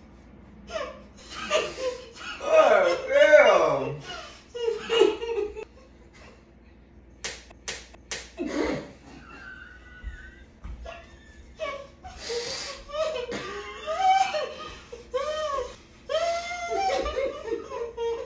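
A young man exclaims and laughs close by.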